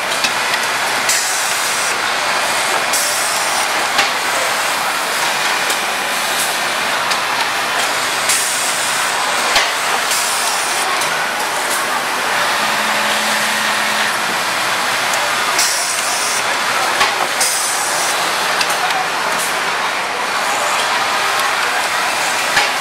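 An automatic sewing machine whirs steadily.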